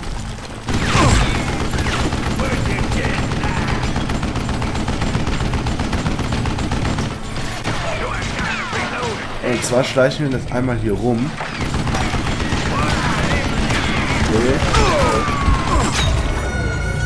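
Revolver shots bang out.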